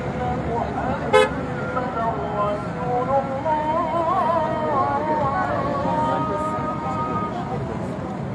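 A man speaks loudly and excitedly close by.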